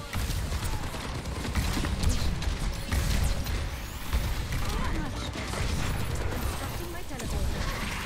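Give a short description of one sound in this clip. A beam weapon hums and crackles as it fires continuously.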